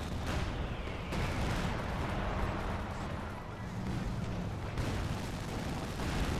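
Tank engines rumble and clank.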